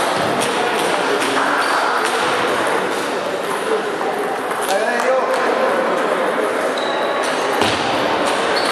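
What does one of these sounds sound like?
Quick footsteps squeak on a hard floor.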